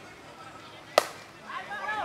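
A metal bat sharply cracks against a ball.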